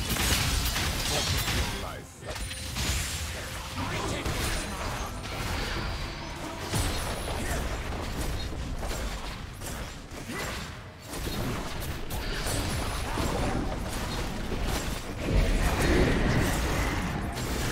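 Game characters strike with clanging hits.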